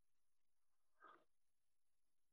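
Paper rustles as a hand folds it.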